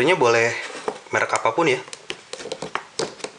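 Small plastic parts click and tap as fingers handle them.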